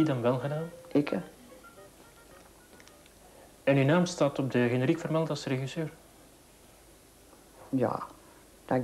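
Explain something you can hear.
An elderly woman speaks calmly and haltingly into a close microphone.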